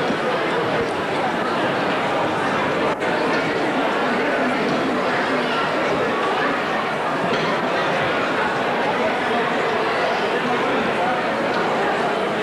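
A man reads out through a microphone and loudspeakers in an echoing hall.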